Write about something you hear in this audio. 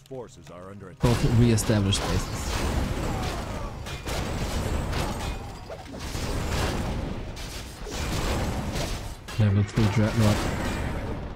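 Weapons clash in a busy video game battle.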